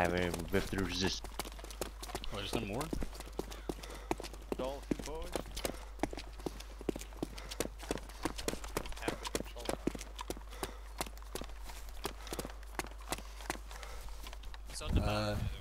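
Footsteps tread quickly over stone.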